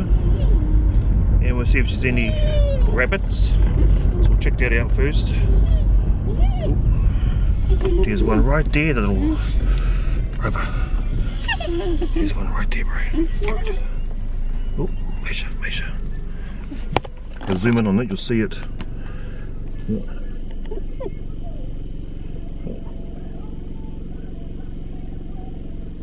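A car engine hums steadily with road rumble inside the car.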